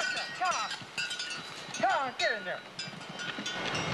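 Horses gallop over dry ground nearby.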